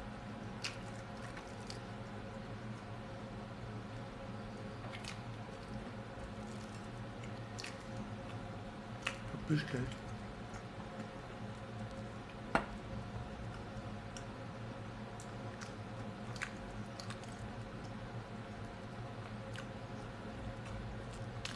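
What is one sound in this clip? A woman chews food with her mouth close by.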